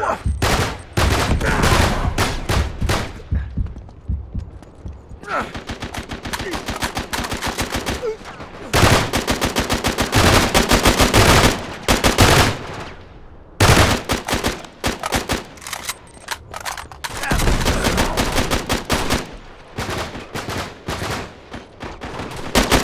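Automatic rifles fire in rapid bursts.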